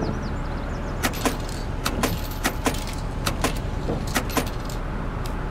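Coins clink into a change tray.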